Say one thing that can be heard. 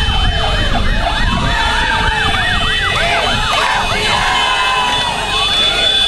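A crowd of young women cheers and shouts.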